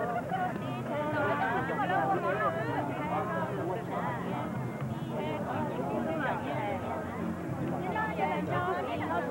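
A crowd of women and men chatters outdoors.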